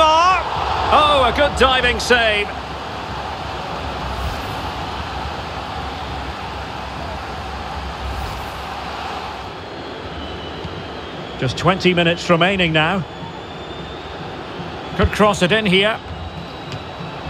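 A large stadium crowd murmurs and roars steadily in the background.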